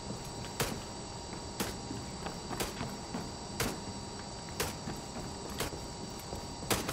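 Footsteps thud slowly across a hard floor.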